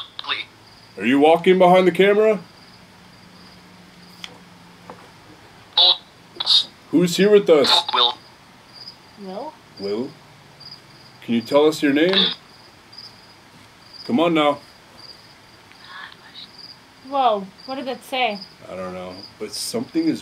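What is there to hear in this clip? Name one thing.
A young man talks in a low, hushed voice close by.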